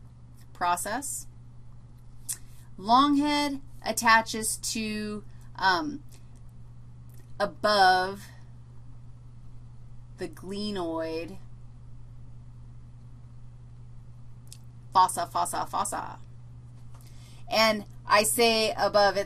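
A woman speaks calmly and clearly into a close microphone, in short phrases with pauses.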